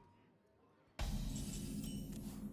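A bright chime rings out to signal a new turn.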